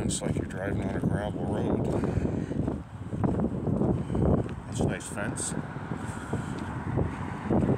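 Footsteps crunch on a thinly snowy pavement.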